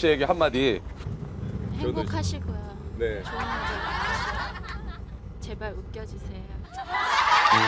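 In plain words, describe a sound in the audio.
A young woman speaks cheerfully, close by.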